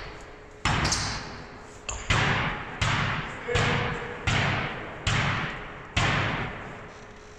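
A basketball bounces repeatedly on a wooden floor in a large echoing hall.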